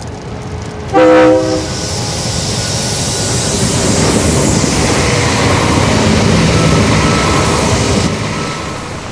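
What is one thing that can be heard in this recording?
A train rumbles and roars past close by.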